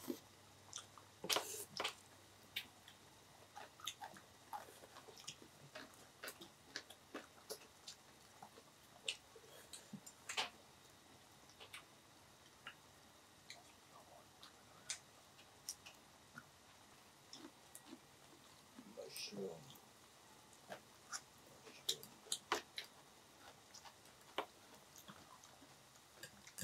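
Chopsticks click against plates and bowls.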